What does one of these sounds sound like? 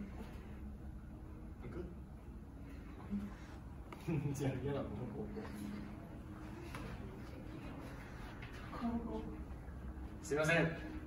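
Two young men talk calmly to each other nearby.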